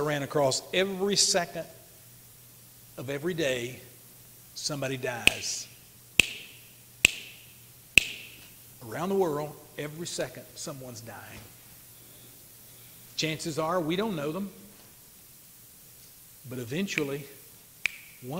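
An elderly man preaches with animation through a microphone, pausing between phrases.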